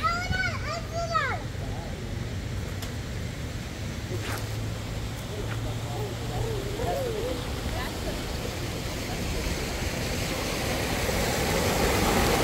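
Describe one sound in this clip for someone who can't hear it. Water flows gently in a stream.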